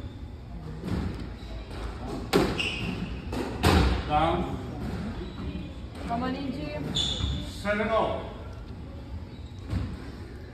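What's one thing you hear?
A squash ball smacks hard against the walls and racquets.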